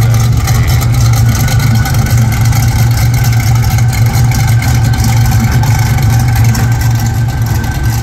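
A large engine idles with a steady, deep rumble.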